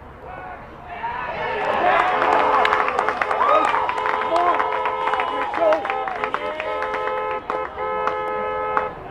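Young men shout excitedly outdoors.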